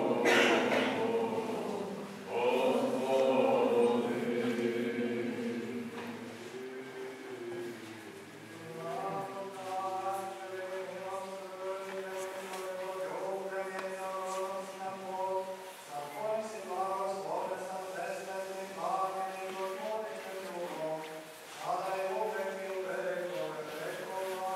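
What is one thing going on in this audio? A man chants slowly and steadily in an echoing room.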